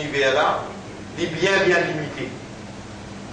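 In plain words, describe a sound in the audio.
A man speaks slowly and calmly, close by.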